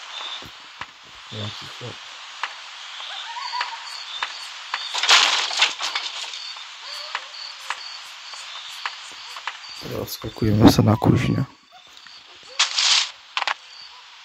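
Footsteps thud across a wooden roof.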